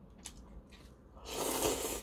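An older man slurps noodles up close.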